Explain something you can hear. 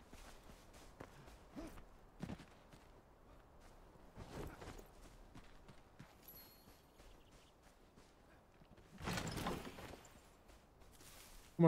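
Footsteps rustle through grass at a run.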